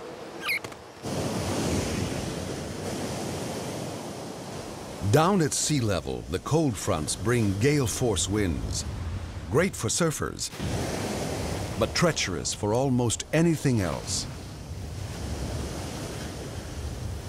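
Heavy waves crash and roar against rocks.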